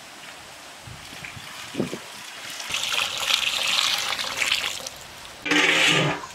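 Water pours and splashes into a metal pot.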